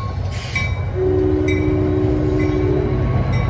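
A train horn sounds a steady two-tone blast.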